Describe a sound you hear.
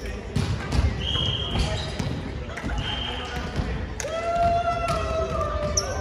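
Sneakers squeak sharply in a large echoing hall.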